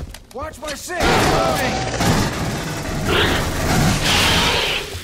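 A gun fires rapid, loud shots.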